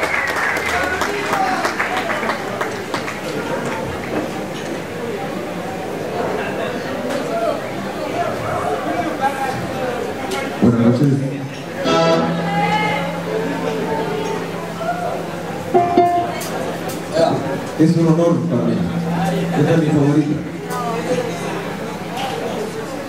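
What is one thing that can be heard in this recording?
A live band plays loudly in a large hall.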